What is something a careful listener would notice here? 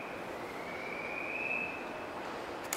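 Train brakes squeal briefly.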